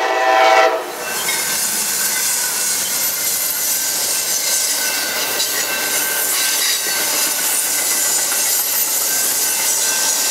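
Passenger car wheels clatter and squeal over the rails.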